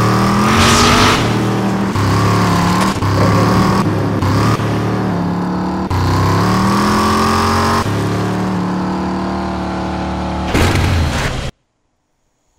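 A buggy's engine roars and revs loudly.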